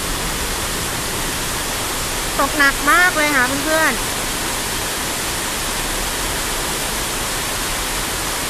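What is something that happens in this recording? Traffic rolls by on a wet road below, with a steady hiss.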